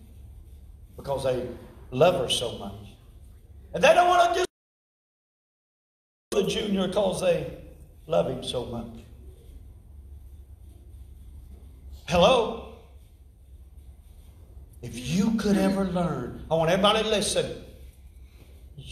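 A middle-aged man speaks through a microphone, pausing between phrases.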